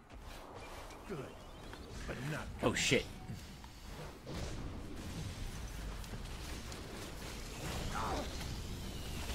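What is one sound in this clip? A young man talks with animation into a headset microphone.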